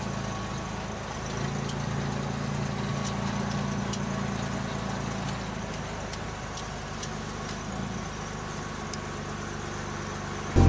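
An old car engine hums and rumbles steadily from inside the cab.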